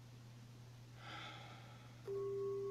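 A man breathes out audibly, close by.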